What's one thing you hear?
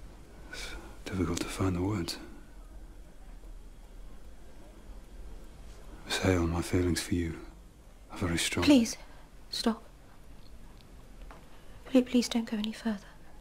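A man speaks quietly and seriously, close by.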